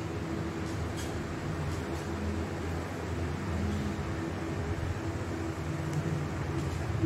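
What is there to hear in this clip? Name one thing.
A plastic cap taps softly onto paper.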